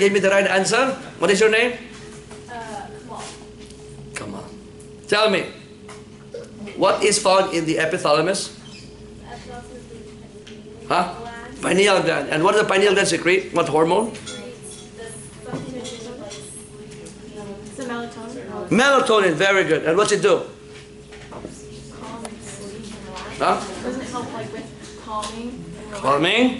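A middle-aged man speaks calmly and clearly, close by, pausing often between phrases.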